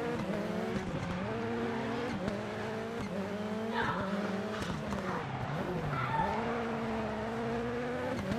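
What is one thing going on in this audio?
Tyres skid and slide on loose gravel.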